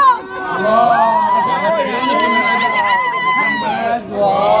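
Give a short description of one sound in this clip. A woman cries out in a long, loud wail.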